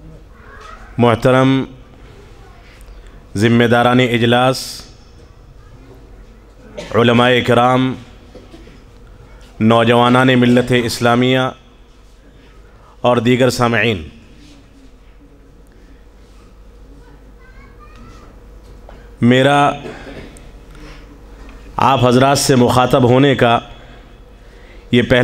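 A man speaks through a microphone and loudspeakers, in loud bursts with pauses, echoing in a large hall.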